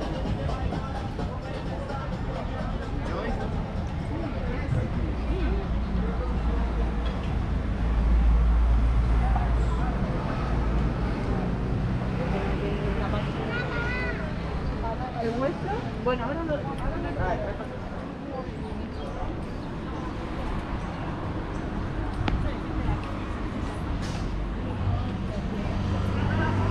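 Many men and women chatter at outdoor tables nearby.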